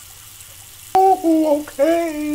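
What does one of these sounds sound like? A man talks with animation, close by.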